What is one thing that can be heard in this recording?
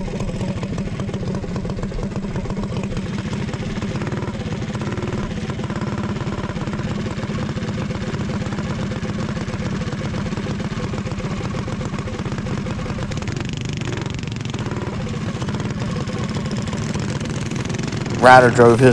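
A small kart engine drones loudly up close.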